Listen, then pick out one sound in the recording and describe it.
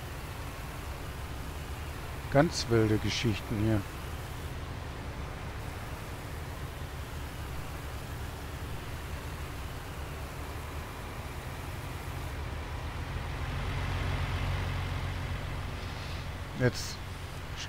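A large harvester engine drones steadily.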